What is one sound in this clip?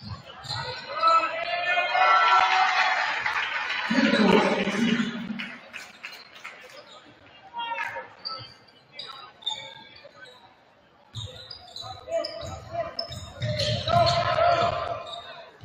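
Basketball players' sneakers squeak on a hardwood court.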